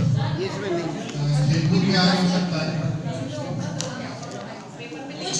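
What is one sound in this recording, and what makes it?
A woman speaks through a microphone and loudspeaker in an echoing room.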